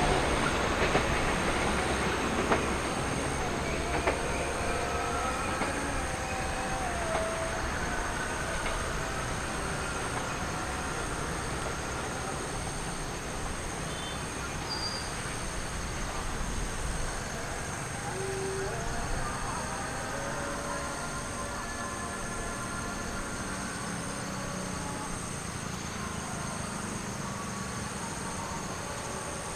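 A train rumbles along the tracks and slowly fades into the distance.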